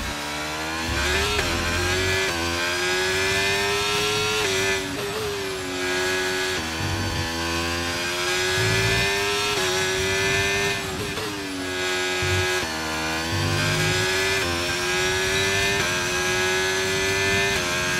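A racing car engine screams at high revs, dipping and climbing as gears shift.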